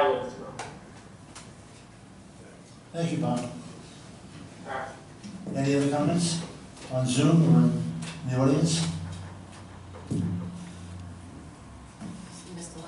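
An elderly man speaks calmly over a loudspeaker from an online call.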